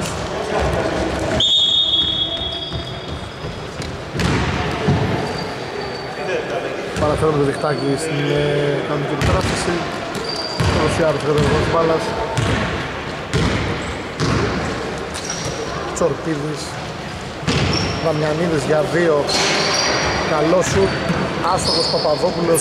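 Men shout and call out to each other across the court.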